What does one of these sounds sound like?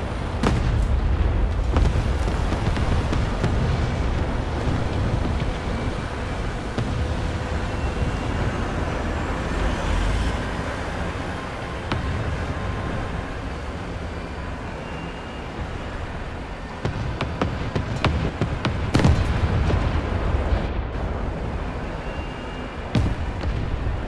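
Tank guns fire with sharp, booming blasts.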